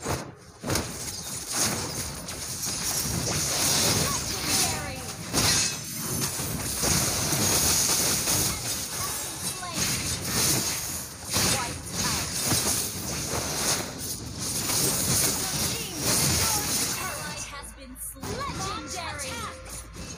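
Game spell effects blast and crackle in quick bursts.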